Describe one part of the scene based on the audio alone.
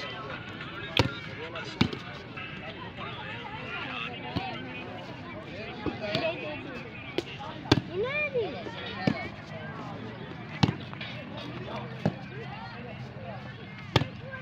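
A ball is hit with sharp slaps by hand, again and again.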